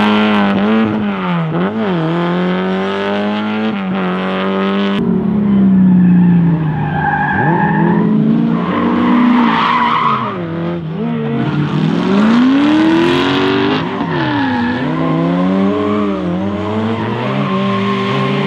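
A car engine revs hard and loud, rising and falling as the car slides around.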